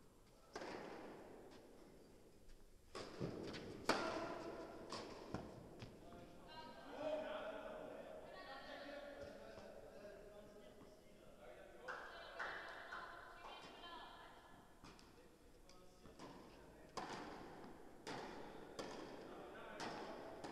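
A tennis ball is struck with a racket, echoing in a large hall.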